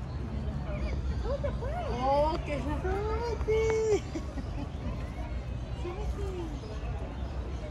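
A young child squeals and chatters nearby.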